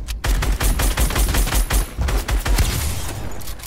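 Rapid gunshots fire in quick succession.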